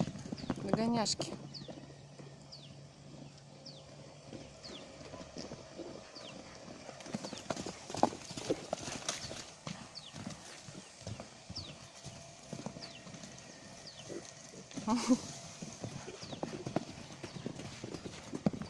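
Horse hooves thud on dry dirt as horses gallop.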